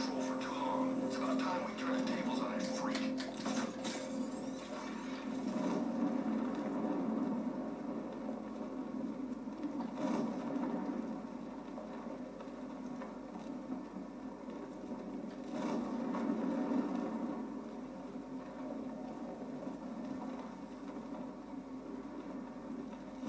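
Wind rushes steadily from a loudspeaker in a room.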